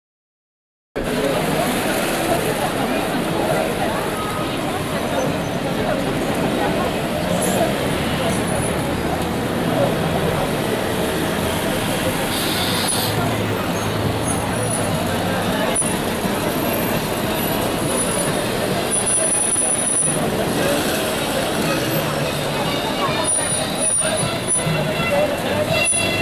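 A busy crowd chatters outdoors.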